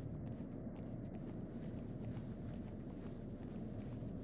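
Footsteps creak on a wooden plank.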